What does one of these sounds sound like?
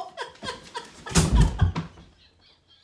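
A body falls onto a bed with a heavy thump.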